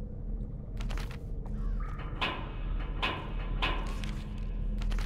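A locked door rattles with a few sharp knocks.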